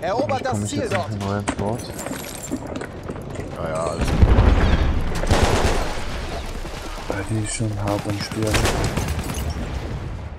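Gunfire cracks nearby in bursts.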